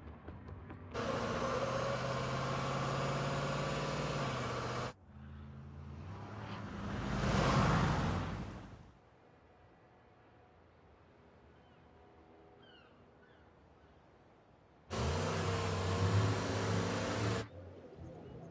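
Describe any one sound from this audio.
A heavy truck engine roars close by.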